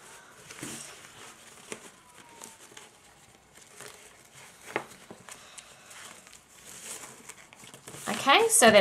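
Ribbon rustles and rubs against paper as hands tie it around a box.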